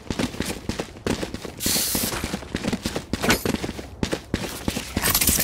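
Quick footsteps thud on hard ground.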